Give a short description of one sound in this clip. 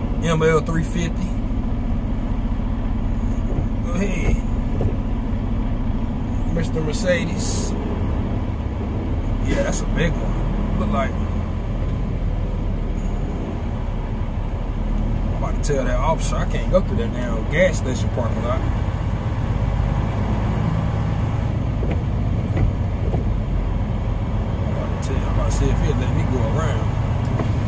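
Tyres rumble on a wet road.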